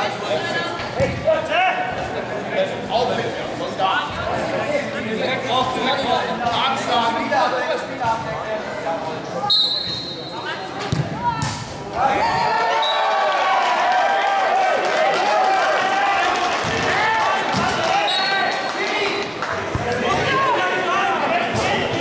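Men shout and call out in a large echoing hall.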